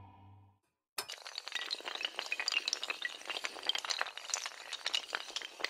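Hard tiles clatter and tumble down.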